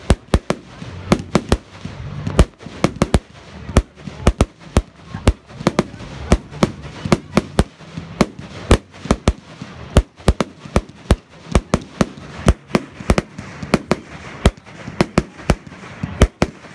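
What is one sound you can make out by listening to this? Fireworks crackle and bang in rapid bursts.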